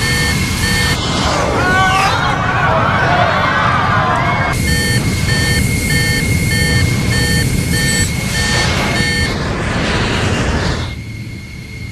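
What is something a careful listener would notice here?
A jet airliner roars past overhead.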